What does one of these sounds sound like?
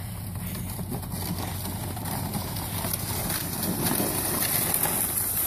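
A sled scrapes and hisses over icy snow, growing louder as it comes closer.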